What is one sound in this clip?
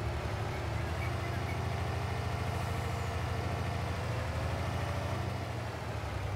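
A truck engine rises in pitch as the truck speeds up.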